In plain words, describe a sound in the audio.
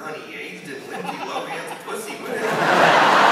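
A man speaks through a microphone, heard from a distance in a large hall.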